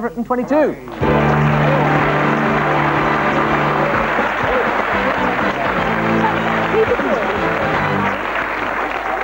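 Upbeat theme music plays loudly.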